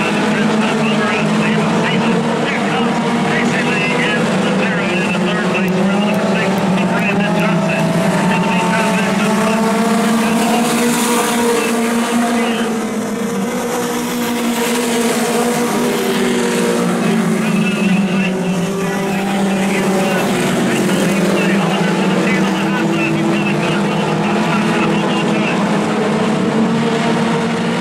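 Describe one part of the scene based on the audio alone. Many race car engines roar loudly around a track, rising and falling in pitch.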